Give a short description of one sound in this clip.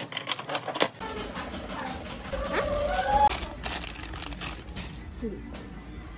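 A plastic toy capsule rattles and snaps open in hands.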